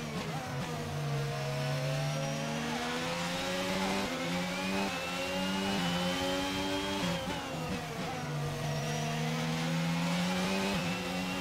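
A racing car engine screams, climbing in pitch through quick gear changes and dropping as the car slows.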